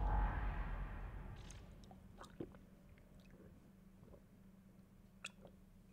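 A young man gulps down a drink.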